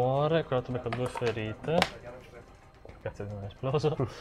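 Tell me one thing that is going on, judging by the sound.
Dice clatter into a tray.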